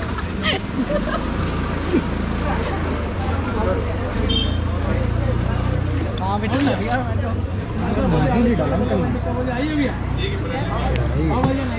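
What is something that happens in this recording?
Several men talk with animation close by among a lively crowd.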